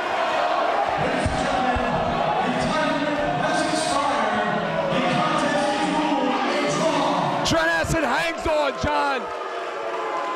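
A man shouts loudly from close by.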